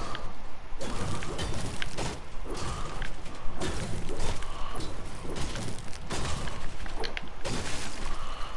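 A pickaxe strikes and smashes hollow objects in quick blows.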